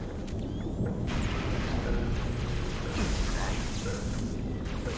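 A futuristic gun fires with sharp energy zaps.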